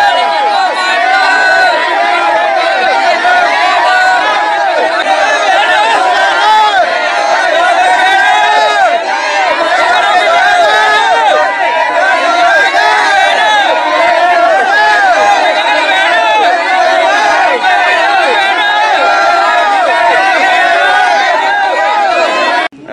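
A crowd of men and women chant and shout loudly together outdoors.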